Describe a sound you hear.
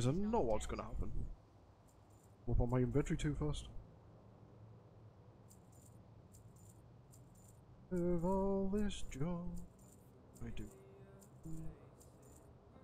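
A man talks calmly and up close into a microphone, in short bursts.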